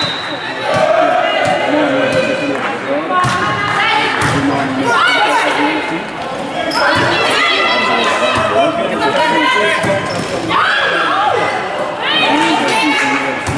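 A volleyball is struck with hard slaps.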